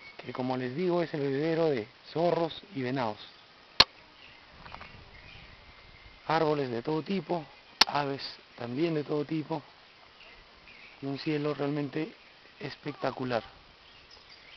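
A man speaks close by, with animation, in short bursts.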